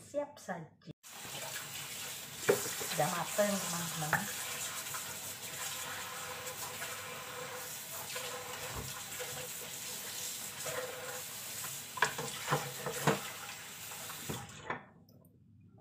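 Water runs steadily from a tap.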